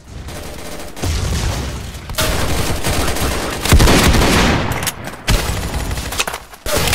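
Gunfire cracks in rapid bursts.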